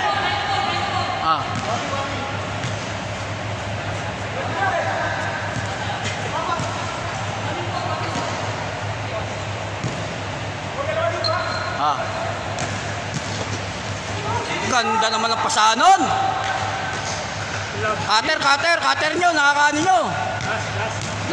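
Young men shout and call out to each other in a large echoing hall.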